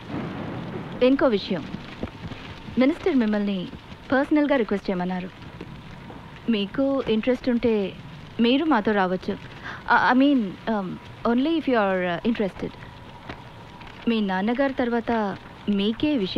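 A woman speaks firmly and coolly, close by.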